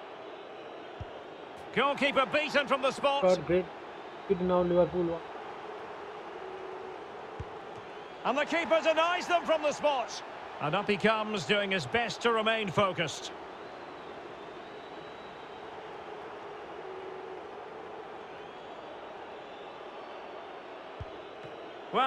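A football is kicked with a short, dull thud.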